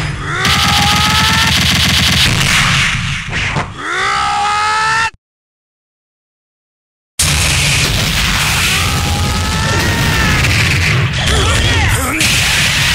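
Rapid fighting-game hit effects crackle and thump in quick bursts.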